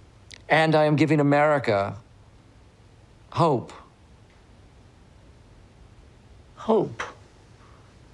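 A middle-aged man speaks slowly and quietly, close by.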